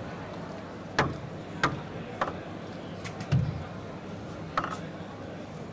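A ping-pong ball bounces a few times on a table before a serve.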